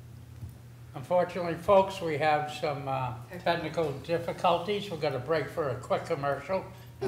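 A man speaks calmly into a microphone, heard over a room's loudspeakers.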